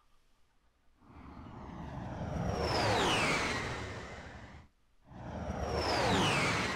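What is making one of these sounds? A spaceship's engines roar as it swoops past with a falling whine.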